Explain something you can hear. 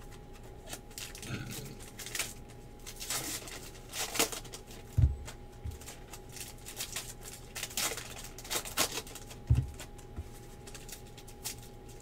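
Foil wrappers crinkle and rustle close by.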